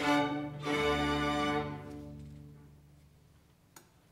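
A choir and orchestra hold a final loud chord that rings out in a large echoing hall.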